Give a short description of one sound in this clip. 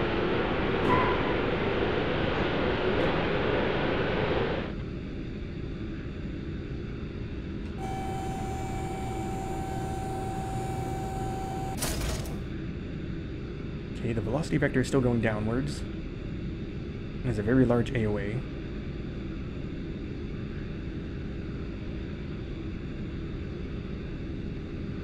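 An aircraft engine roars steadily.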